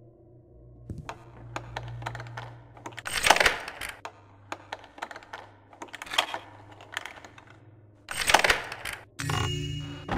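A lockpick clicks and scrapes in a lock.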